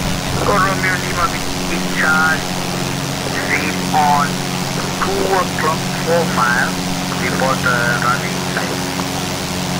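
A man speaks calmly into a headset microphone.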